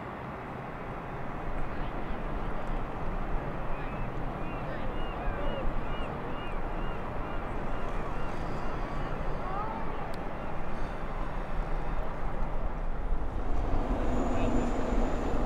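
Water laps gently against a pebbly shore.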